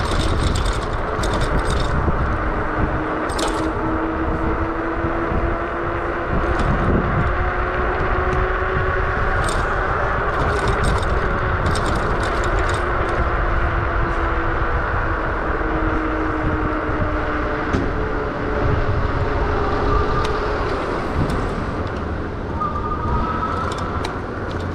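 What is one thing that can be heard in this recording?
Tyres roll over rough pavement.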